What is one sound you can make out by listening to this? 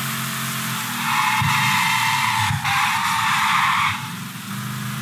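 Tyres screech as the car skids through a turn.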